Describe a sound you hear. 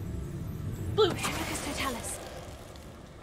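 A magic spell bursts with a sharp crackling whoosh.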